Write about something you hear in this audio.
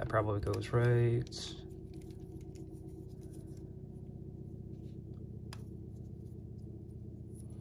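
Plastic toy parts click and snap as they are twisted by hand.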